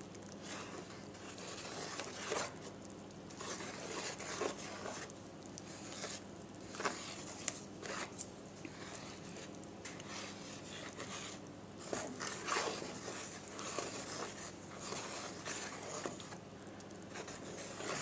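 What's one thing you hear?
A wooden spoon stirs thick batter, scraping and tapping against a metal bowl.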